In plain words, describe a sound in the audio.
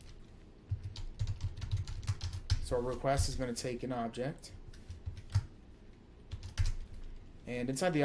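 Keys on a keyboard click in quick bursts.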